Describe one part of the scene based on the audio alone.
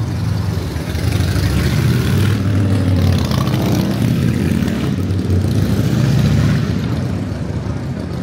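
A van drives past close by, its engine rumbling louder and fading.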